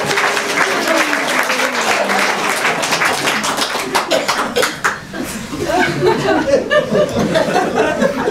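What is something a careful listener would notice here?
An elderly man laughs heartily close by.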